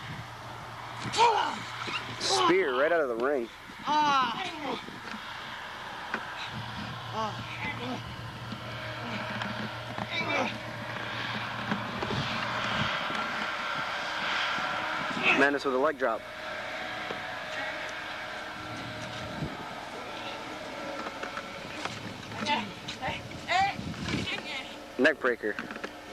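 Young men shout and yell excitedly outdoors.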